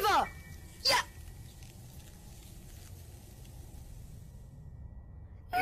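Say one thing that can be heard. A soft magical shimmer hisses as a ghostly figure dissolves.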